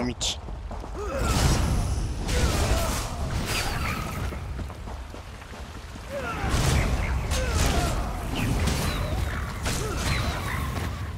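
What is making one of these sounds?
Heavy blows and bursts of magic crash rapidly in a fight.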